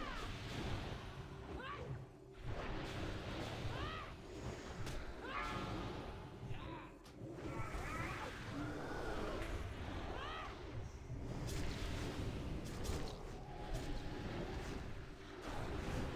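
Battle spells crackle and burst.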